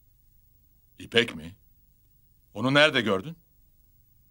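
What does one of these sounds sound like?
A middle-aged man speaks tensely into a phone, close by.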